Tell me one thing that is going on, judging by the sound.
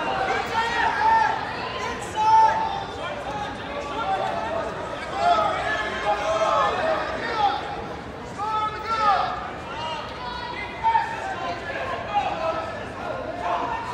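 A crowd of spectators shouts encouragement in a large echoing hall.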